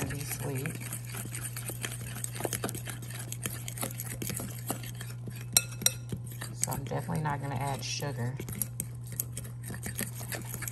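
A whisk scrapes and clicks against a glass bowl while stirring thick batter.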